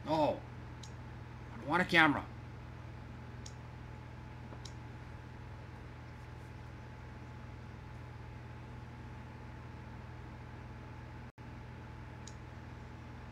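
Arcade buttons click softly.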